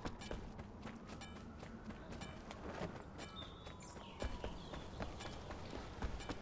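Quick footsteps run across grass and then hard pavement.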